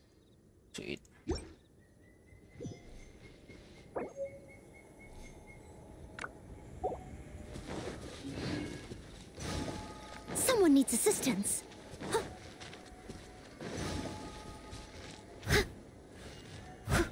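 Game sound effects chime and whoosh during a fight.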